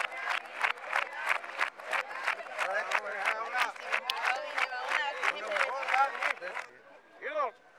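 A crowd of men and women chants loudly nearby.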